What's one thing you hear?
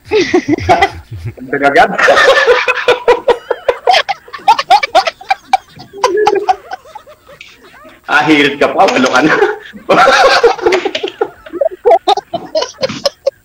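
A woman laughs loudly over an online call.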